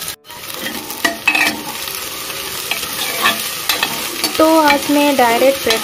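A metal spatula scrapes and stirs against a pan.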